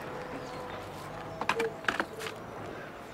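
A plastic chair knocks and scrapes on the ground.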